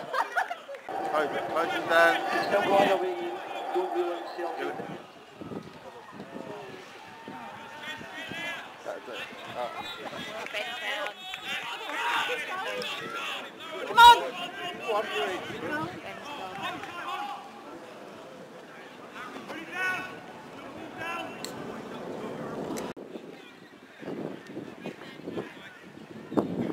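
Players shout to each other across the field.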